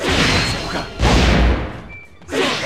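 A fiery blast bursts with a deep boom.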